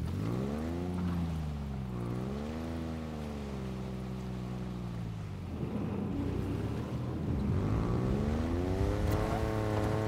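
Water splashes under tyres.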